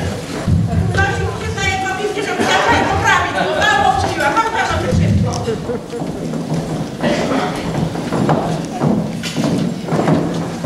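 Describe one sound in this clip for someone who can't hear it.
A group of elderly women sing together in a large hall.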